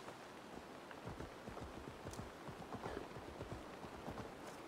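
A large animal's paws thud on grass at a run.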